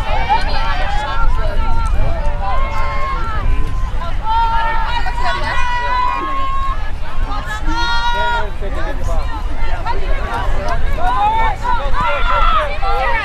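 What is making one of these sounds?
Young women shout and call out to each other across an open field.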